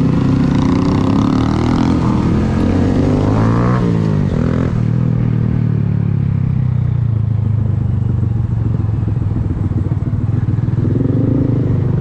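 A motorcycle engine idles and revs close by.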